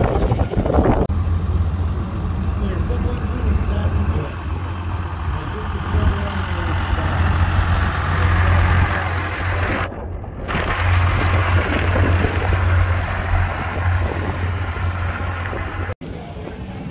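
A pickup truck's engine rumbles deeply as it drives slowly past.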